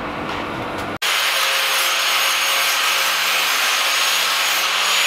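A handheld power tool whirs steadily.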